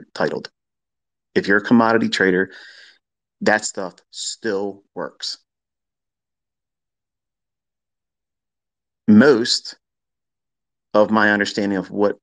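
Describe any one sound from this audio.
A man speaks with animation, close to a microphone, in short bursts.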